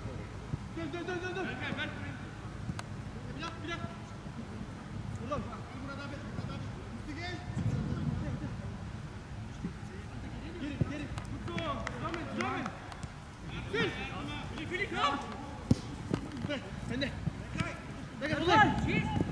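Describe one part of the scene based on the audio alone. Men shout to each other across an open outdoor field.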